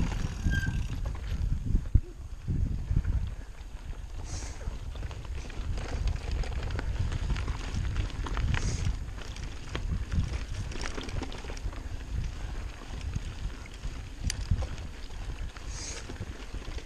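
Bicycle tyres crunch over a dirt trail.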